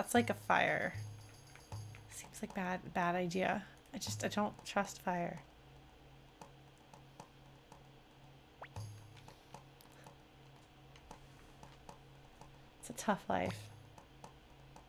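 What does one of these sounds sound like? A young woman talks and laughs with animation, close to a microphone.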